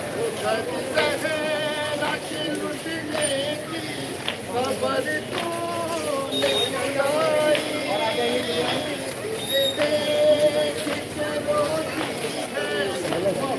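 A crowd of men chants loudly together in the open air.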